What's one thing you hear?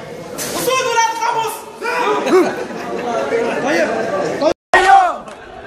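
A crowd of men talks and murmurs nearby.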